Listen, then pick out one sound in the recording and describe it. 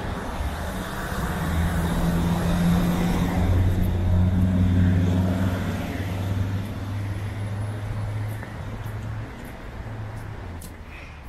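A bus engine rumbles by on a nearby street.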